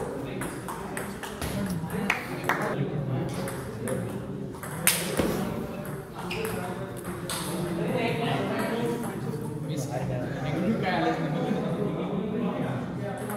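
A table tennis ball clicks against paddles and bounces on a table.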